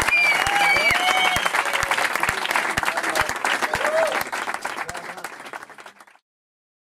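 An audience claps loudly, then the applause fades away.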